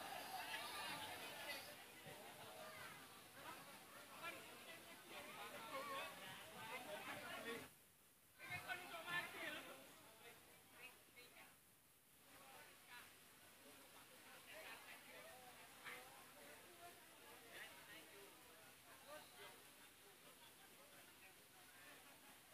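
A crowd of young men chatter and call out nearby.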